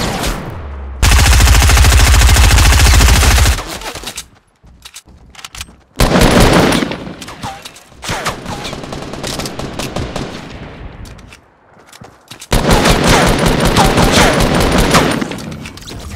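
Rapid gunfire rattles close by in bursts.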